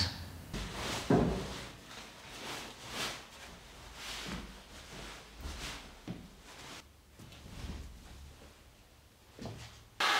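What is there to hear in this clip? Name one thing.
Bedsheets rustle and flap as they are spread out.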